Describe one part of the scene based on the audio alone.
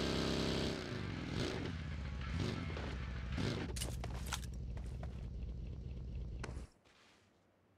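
A buggy engine roars and revs, then cuts out abruptly.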